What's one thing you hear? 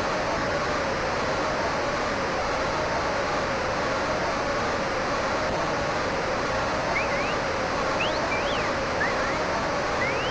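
A large crowd murmurs steadily in the background.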